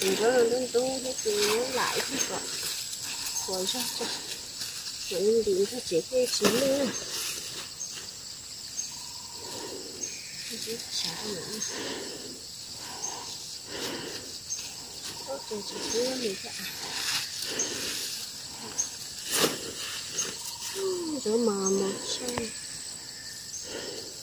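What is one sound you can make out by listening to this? Leafy plant stems rustle and snap as they are picked by hand.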